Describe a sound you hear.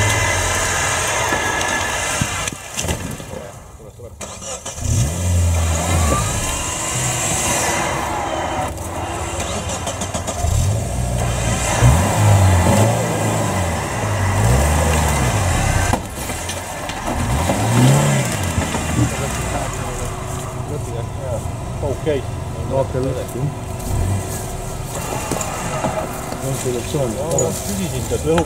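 An off-road vehicle's engine revs hard up and down close by.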